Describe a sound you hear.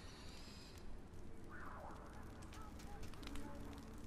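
A large bird's wings flap in flight.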